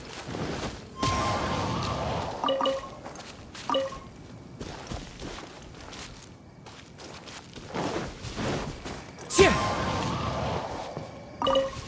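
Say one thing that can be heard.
A magic attack whooshes loudly.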